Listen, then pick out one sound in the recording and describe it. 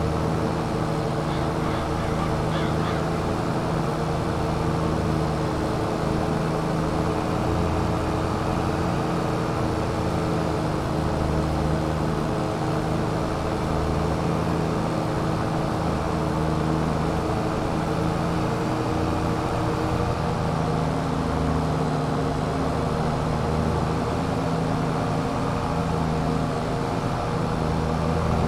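A tractor engine hums steadily close by.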